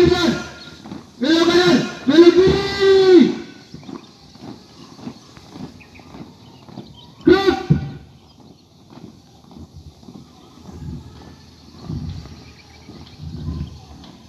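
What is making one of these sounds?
A group marches in step on dirt ground.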